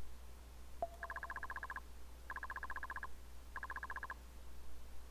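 Rapid electronic blips chatter in short bursts as text is typed out.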